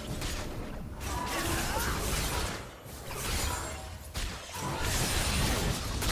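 Magic blasts whoosh and crackle in a fast battle.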